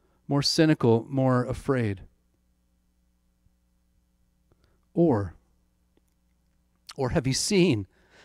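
A middle-aged man speaks calmly into a microphone, close by, with pauses.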